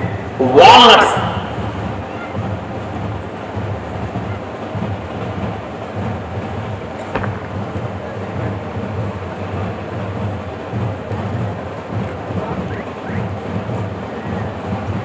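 A man speaks loudly through a microphone over a loudspeaker.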